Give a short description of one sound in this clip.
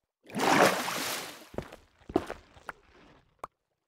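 A pickaxe chips at stone with short knocks.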